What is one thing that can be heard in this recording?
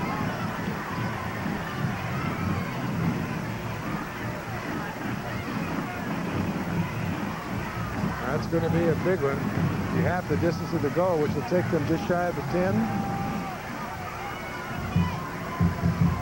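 A crowd murmurs and chatters in an open stadium.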